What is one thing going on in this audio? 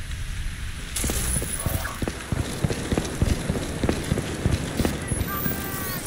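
Heavy footsteps thud on a hard rooftop.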